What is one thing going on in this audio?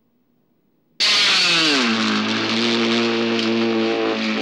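An electric cast saw whines loudly as it cuts through plaster.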